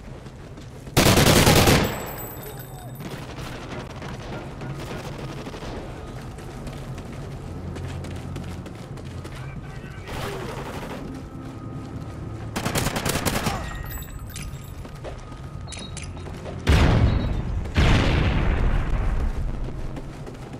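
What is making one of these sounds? Rifle gunfire rings out in loud, rapid bursts.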